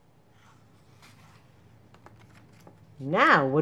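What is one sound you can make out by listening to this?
A book's paper page turns with a soft rustle.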